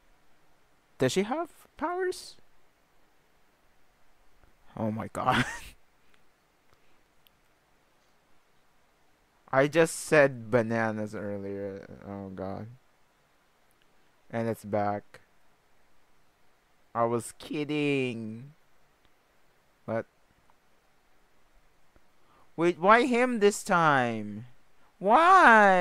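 A young man speaks close to a microphone in short, animated bursts with pauses between them.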